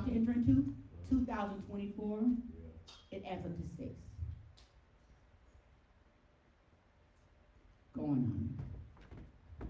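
A middle-aged woman speaks with feeling into a microphone, heard through loudspeakers in an echoing room.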